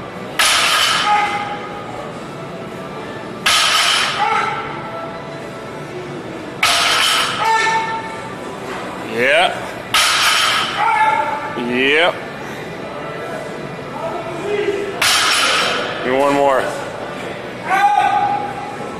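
A loaded barbell thuds and clanks onto the floor again and again, its weight plates ringing.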